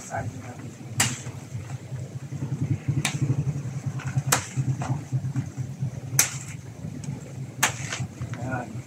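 A machete chops into a banana stalk with sharp thwacks.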